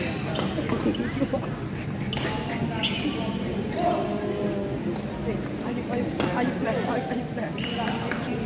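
A crowd of people chatter in the hall.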